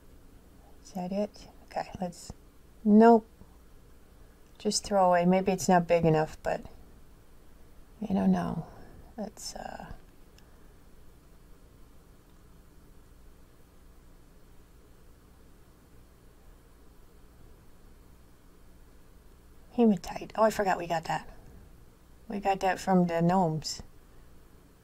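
A young woman speaks with animation into a close microphone, in short bursts with pauses.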